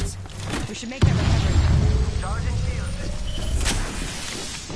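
A shield battery charges with a rising electric hum.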